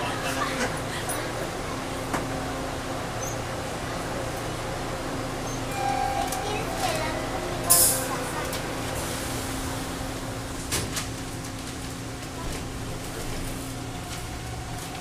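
A subway train hums steadily while standing at a station.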